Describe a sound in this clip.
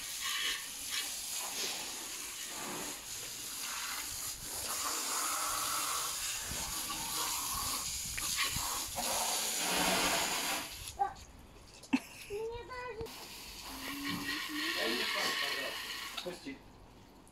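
Water sprays hard from a hose nozzle and splashes onto a car and wet paving.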